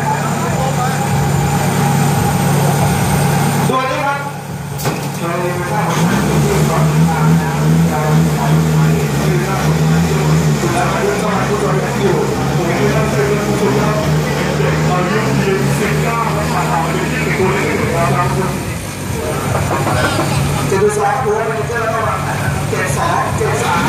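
A loud race car engine idles with a deep, steady rumble.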